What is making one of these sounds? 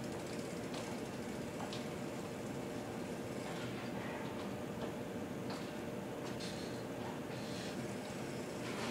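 Bike tyres roll and squeak on a wooden floor.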